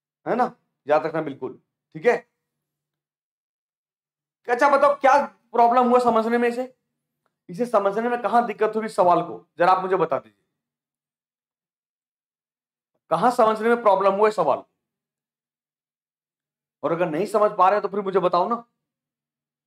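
A man speaks with animation into a close microphone, in short bursts with pauses.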